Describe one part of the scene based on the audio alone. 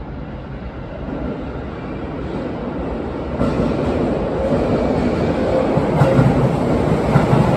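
A train approaches through a tunnel, rumbling louder as it nears.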